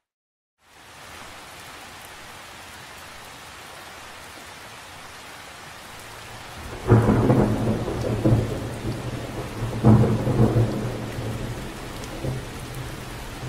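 Rain patters steadily onto the surface of a lake.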